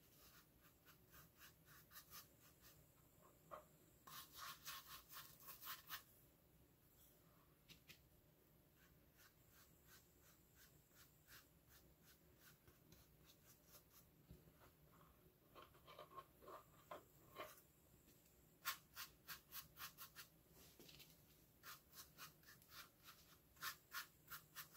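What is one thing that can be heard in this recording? A paintbrush brushes and dabs paint onto a hollow pumpkin with quick, soft strokes.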